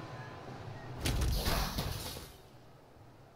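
A loud crashing game sound effect bursts out and fades.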